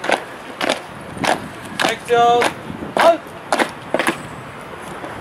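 Boots march and stamp on pavement.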